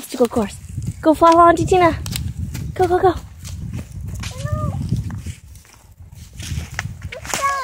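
Small footsteps crunch on dry leaves and pine needles.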